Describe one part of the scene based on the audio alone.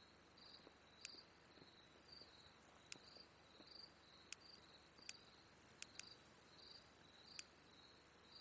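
Short interface clicks tick now and then.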